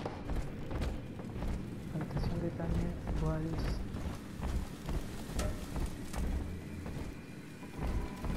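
Footsteps thud across a hard floor.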